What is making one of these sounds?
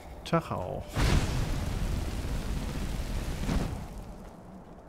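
A magic spell bursts with a loud rushing roar.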